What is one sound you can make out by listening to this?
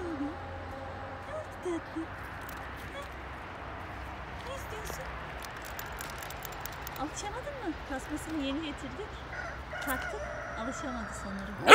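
A puppy whines and whimpers softly, close by.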